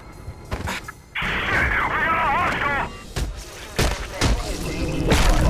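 A heavy body slams down with a thud.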